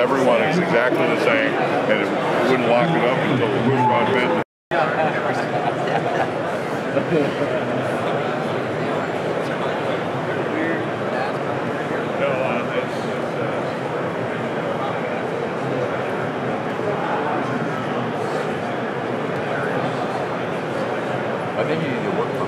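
Many people chatter in a large, busy hall.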